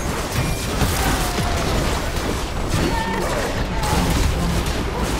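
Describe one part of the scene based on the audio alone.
Magic spells crackle and burst in a busy fight.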